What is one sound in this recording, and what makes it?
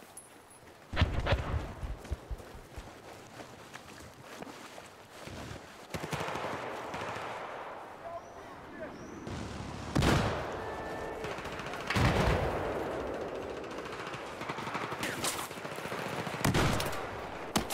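Rifle shots boom loudly a few times.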